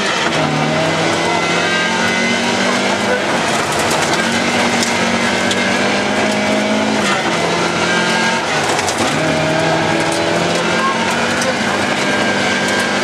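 A car engine roars loudly from inside the car, rising and falling in pitch as it shifts gears.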